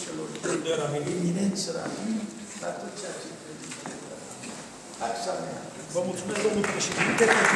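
An elderly man speaks calmly in an echoing hall.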